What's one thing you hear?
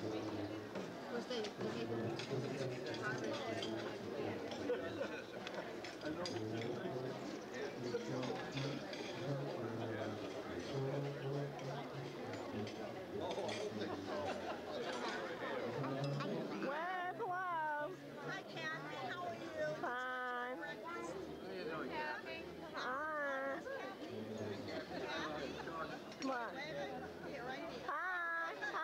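A crowd of adults chatters outdoors.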